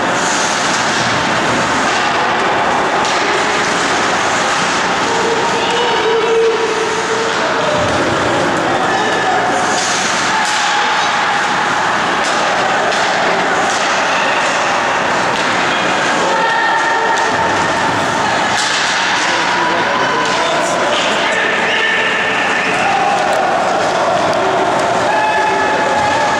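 Skates scrape and hiss on ice in a large echoing arena.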